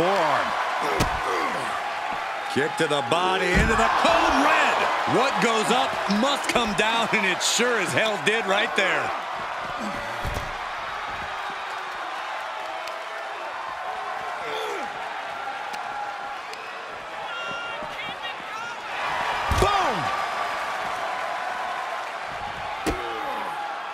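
Heavy thuds and slams ring out as wrestlers hit each other.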